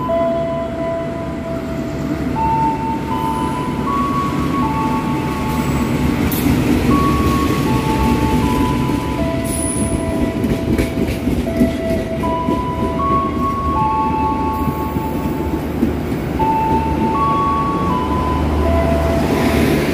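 A train rolls through with a deep, steady rumble.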